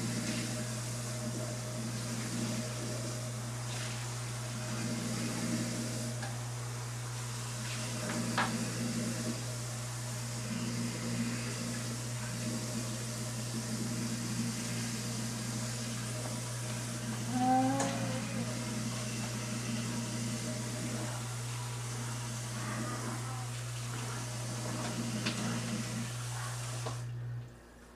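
Food rustles and knocks softly on a table as a man handles it.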